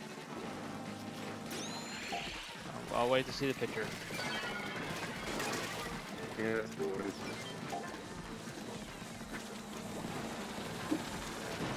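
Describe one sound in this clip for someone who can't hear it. Video game effects splat and pop continuously.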